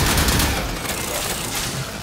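A heavy blade whooshes through the air.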